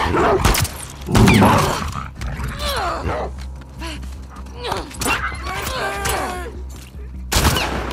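A dog snarls and yelps.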